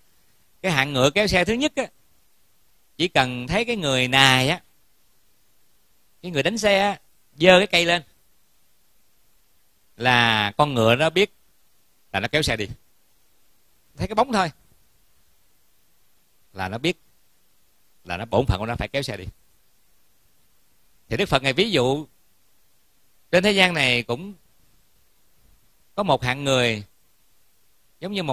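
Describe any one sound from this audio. An elderly man speaks calmly in short phrases with long pauses.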